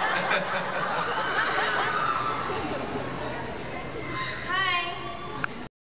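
A large crowd chatters in an echoing hall.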